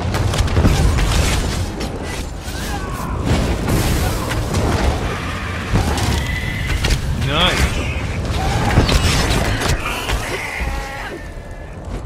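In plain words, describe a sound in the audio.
Magic blasts crackle and burst in quick succession.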